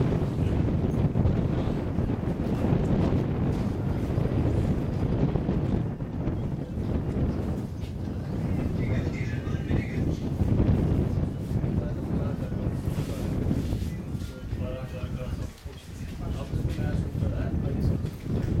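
Wind blows hard across an open field, rumbling steadily.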